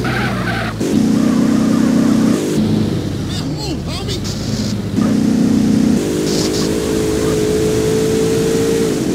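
A car engine revs hard.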